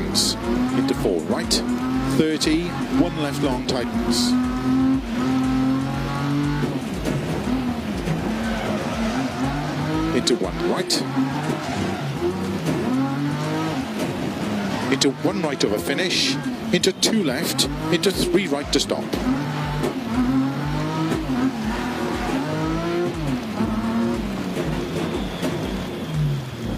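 A car engine roars, revving up and down through the gears.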